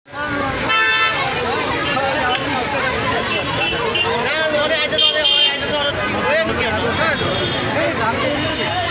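A large crowd of children chatters and shouts close by outdoors.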